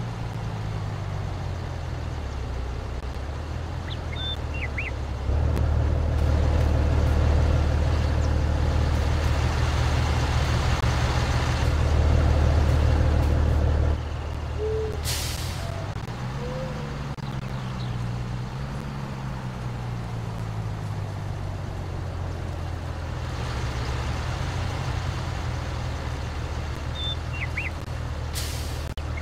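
A diesel truck engine rumbles low and steadily, growing louder for a while before settling back.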